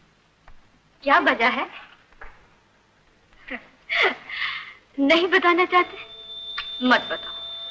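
A woman speaks warmly and playfully nearby.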